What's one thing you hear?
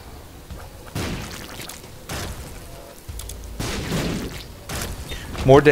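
Video game sound effects burst and splat in quick succession.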